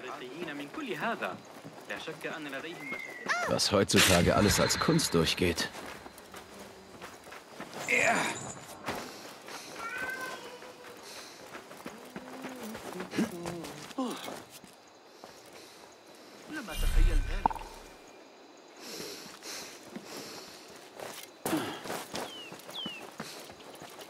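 Footsteps run quickly over sandy ground.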